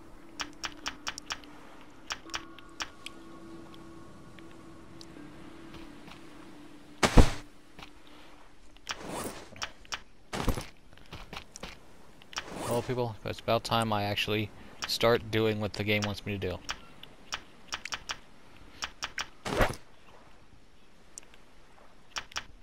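Short interface clicks tick.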